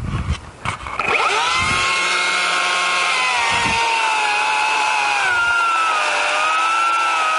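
A chainsaw engine starts up and runs loudly, revving up and down.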